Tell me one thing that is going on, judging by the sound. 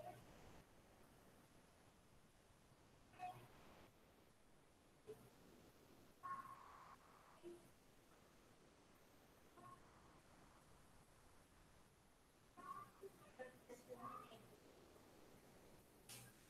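A young woman speaks calmly and haltingly through an online call.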